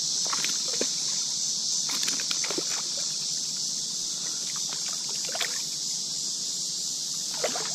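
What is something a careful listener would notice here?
A fish splashes and thrashes in shallow water.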